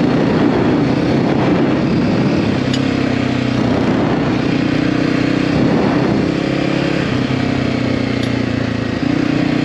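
A motorcycle engine hums steadily and shifts pitch as the bike rides along.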